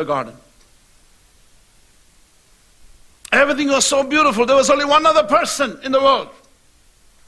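A middle-aged man speaks with emphasis through a microphone.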